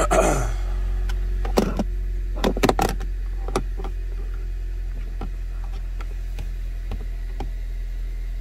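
A handheld device clicks and rustles as it is handled.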